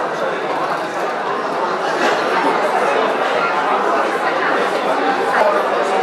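A crowd murmurs and chatters in a large hall.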